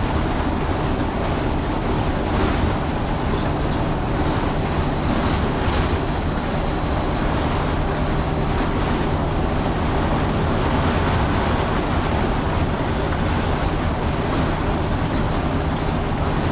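A large vehicle's engine hums steadily from inside the cab.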